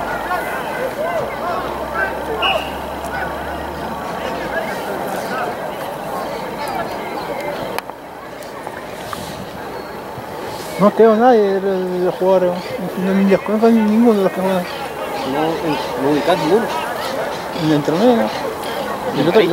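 Players call out to one another across an open field.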